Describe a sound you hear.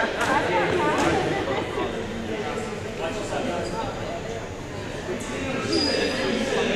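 A crowd of young people shouts and chatters in a large echoing gym.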